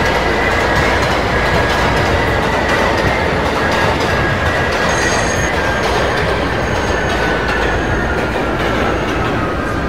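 A subway train rumbles loudly through a tunnel.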